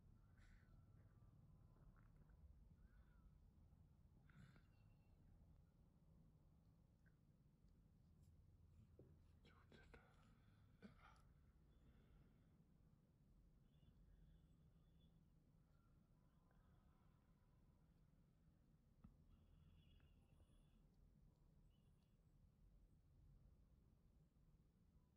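Metal tweezers click softly against skin.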